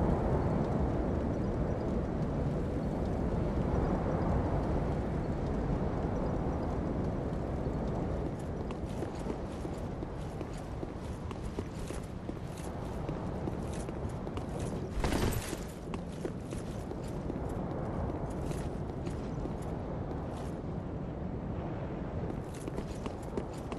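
A strong wind roars steadily outdoors.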